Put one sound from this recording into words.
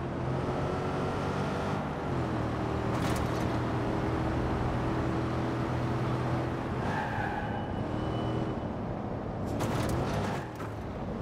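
A car engine hums and revs steadily as the car drives along.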